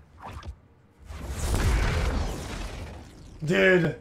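Flames roar up in a sudden burst.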